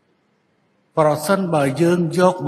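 An elderly man speaks formally into a microphone.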